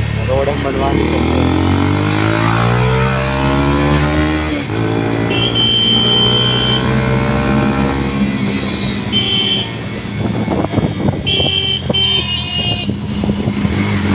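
A motorcycle engine revs up loudly through the gears as it accelerates.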